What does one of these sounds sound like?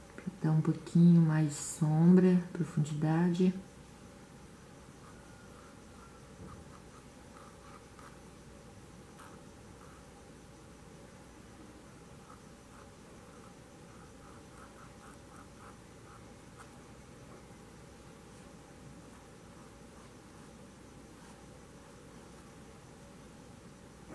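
A paintbrush brushes softly on fabric.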